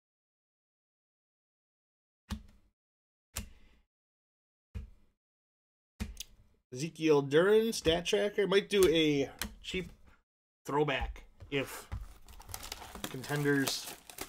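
Plastic card wrappers crinkle as they are torn open.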